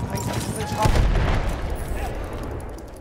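An explosion booms loudly and echoes.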